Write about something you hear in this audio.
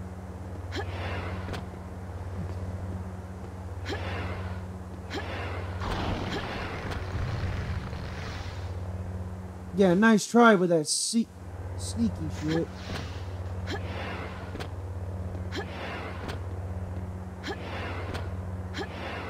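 Footsteps thud at a run.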